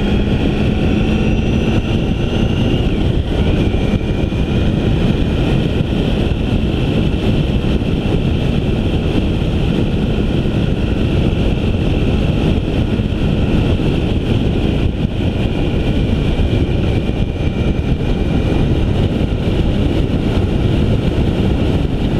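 Wind rushes loudly past a moving vehicle.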